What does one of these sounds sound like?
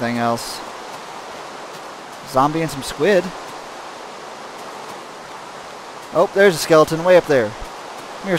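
Rain falls steadily.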